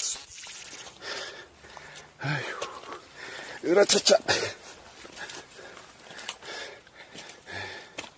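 Footsteps crunch on rock and loose stones.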